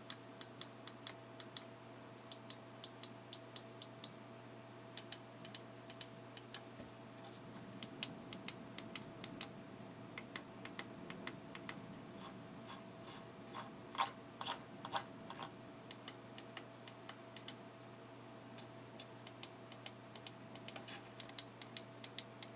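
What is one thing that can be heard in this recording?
Mouse buttons click quickly and repeatedly up close.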